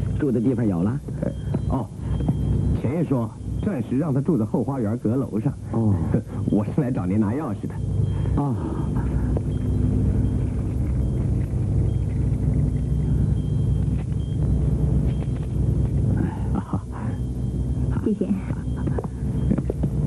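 An elderly man speaks and laughs warmly.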